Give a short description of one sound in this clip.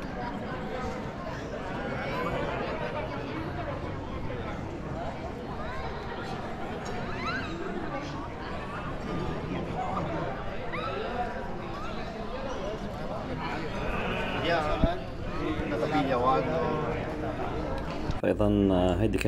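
People chatter nearby outdoors.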